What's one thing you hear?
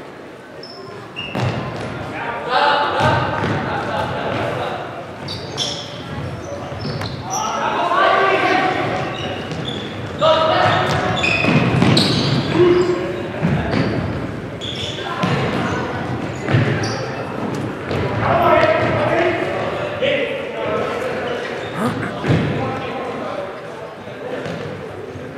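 Shoes squeak on a hard floor in a large echoing hall.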